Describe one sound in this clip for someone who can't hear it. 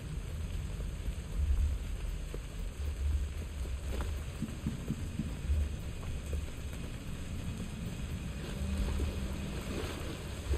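Footsteps splash quickly across wet ground.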